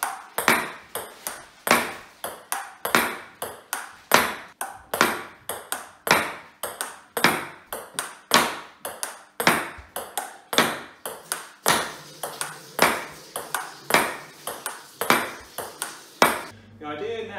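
A ping pong ball clicks sharply and quickly against a paddle and a table in an echoing room.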